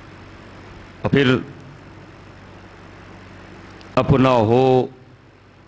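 A man speaks loudly into a microphone in short bursts, heard through a loudspeaker.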